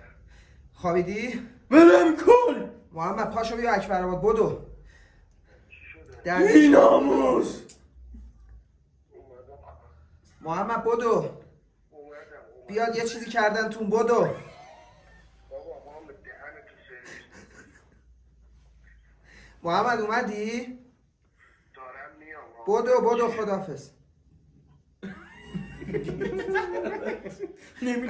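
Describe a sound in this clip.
A young man speaks into a phone close by, in short voice messages.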